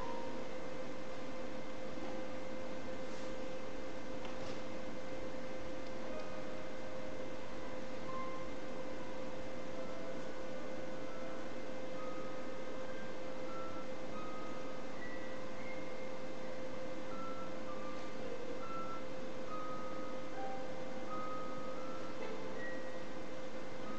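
A concert harp is plucked.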